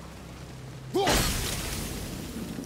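An axe strikes with a heavy crash.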